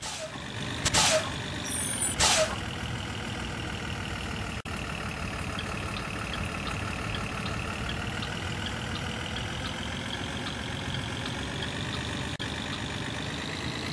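A bus engine hums steadily while driving.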